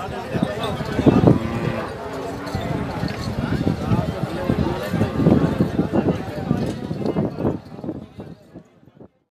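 Several men talk loudly nearby over a busy outdoor crowd.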